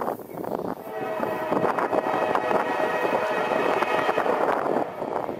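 A train rumbles along the tracks in the distance.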